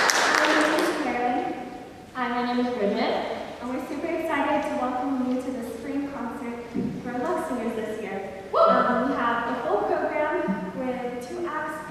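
A group of young women sings together in a large echoing hall.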